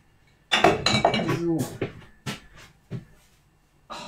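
Utensils clatter against a pan.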